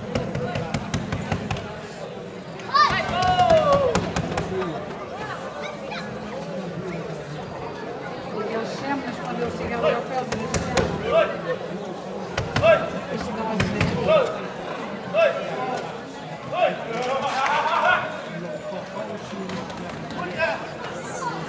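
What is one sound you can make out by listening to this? A crowd of men and women shouts and cheers outdoors.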